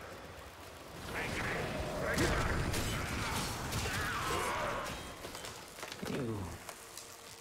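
Energy blasts crackle and whoosh in quick bursts.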